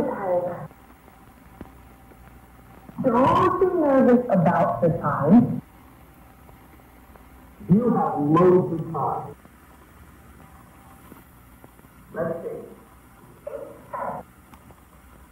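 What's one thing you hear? A young man speaks calmly and softly into a close microphone, with pauses.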